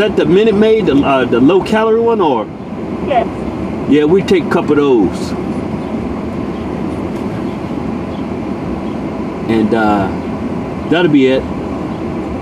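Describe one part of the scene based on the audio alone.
A man talks and laughs with animation close by.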